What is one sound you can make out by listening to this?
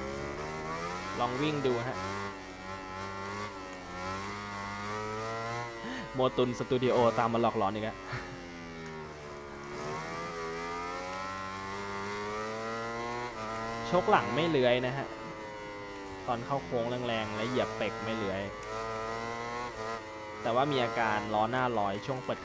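A motorcycle engine pops and crackles sharply when slowing for bends.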